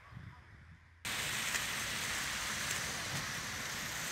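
Car tyres hiss through wet slush.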